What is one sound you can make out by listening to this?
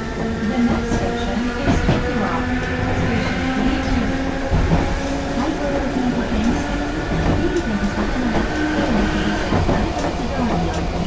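An electric train motor whines and shifts in pitch.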